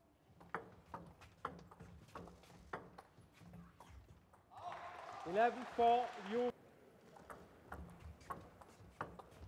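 A ping-pong ball clicks quickly back and forth off paddles and a table.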